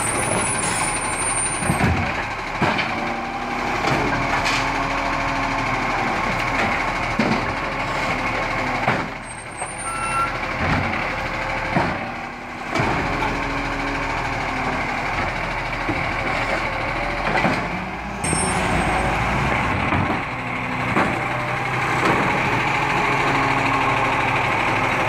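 A hydraulic arm whirs as it lifts and tips a bin.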